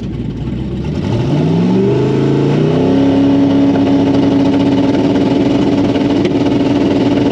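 A race car engine roars and climbs in pitch as the car launches hard.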